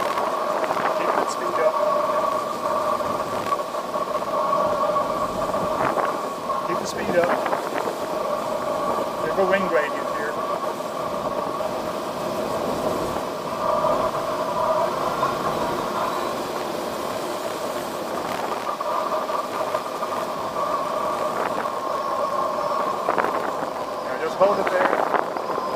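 Air rushes steadily past an aircraft canopy.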